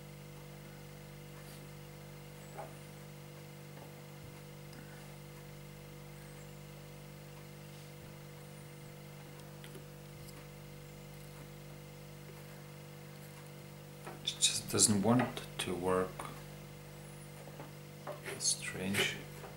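A heavy magnet clicks and scrapes against metal screws.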